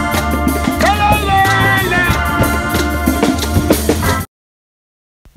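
A small band plays guitars and hand drums.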